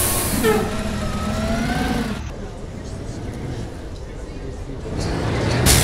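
A diesel city bus engine rumbles as the bus pulls away.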